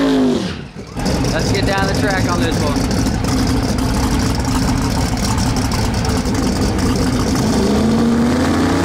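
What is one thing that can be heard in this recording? A race car engine rumbles loudly at idle.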